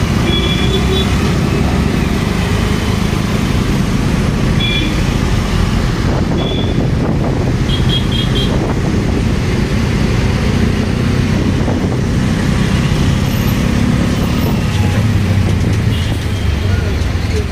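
An auto-rickshaw engine putters steadily at close range.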